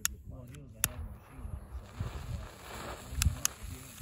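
A lighter clicks and sparks.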